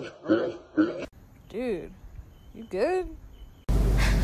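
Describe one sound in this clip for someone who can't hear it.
A cat yowls.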